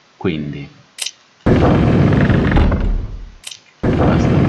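A short electronic click sounds as a menu selection moves.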